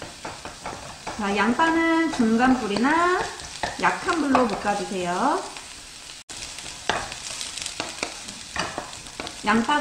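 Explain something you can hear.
A wooden spatula scrapes and taps against a pan.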